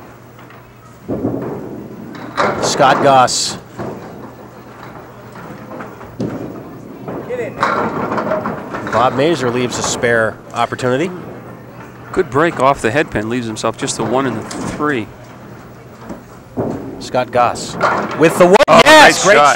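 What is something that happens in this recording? Bowling pins crash and clatter as a ball strikes them.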